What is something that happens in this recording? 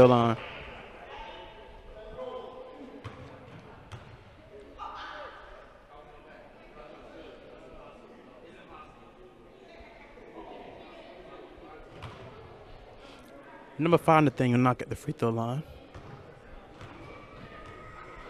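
Young players shout and call out in an echoing gym.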